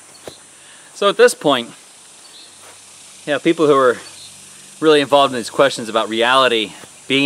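A man speaks close by, calmly and with pauses.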